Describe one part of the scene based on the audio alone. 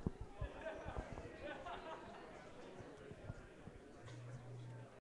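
A crowd of men and women chat nearby in an echoing hall.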